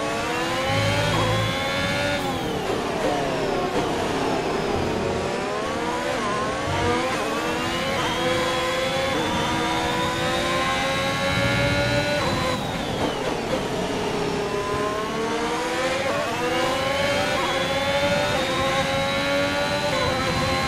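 A racing car engine screams, rising in pitch through the gears and dropping sharply when braking.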